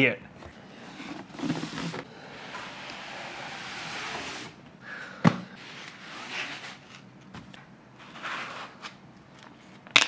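Cardboard and packing foam rustle and scrape.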